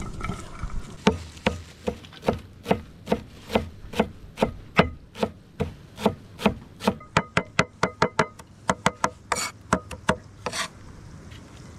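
A knife chops herbs rapidly on a wooden board.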